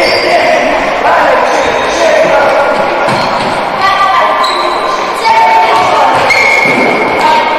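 Players' shoes squeak and thud on a hard floor in a large echoing hall.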